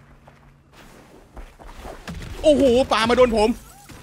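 An explosion bursts.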